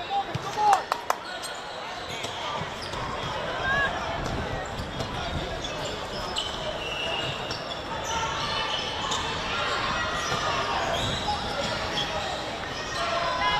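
Players shout to each other across an open field in the distance.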